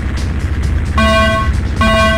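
A starting signal beeps twice.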